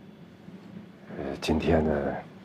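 A middle-aged man speaks firmly nearby.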